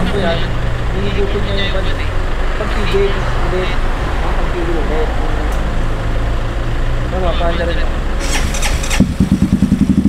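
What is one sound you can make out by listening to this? Men talk with animation close by.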